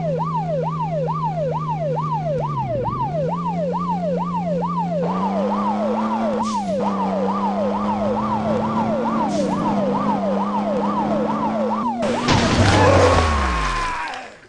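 An engine hums steadily and revs up slightly.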